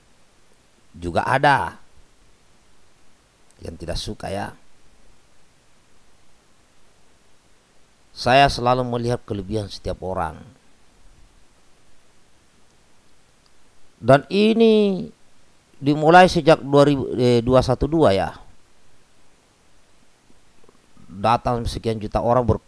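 A middle-aged man speaks calmly and close into a microphone, in bursts with pauses.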